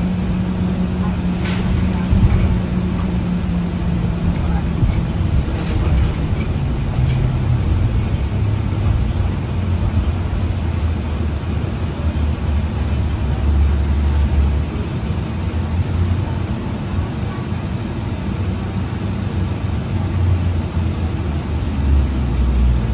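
The bus rattles and clatters over the road.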